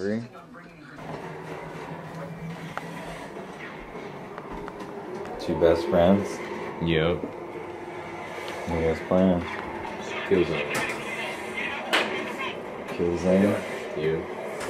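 A video game plays sound effects and music through a television.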